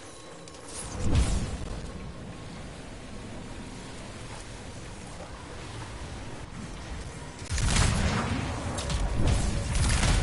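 Loud deep booms and whooshes burst out.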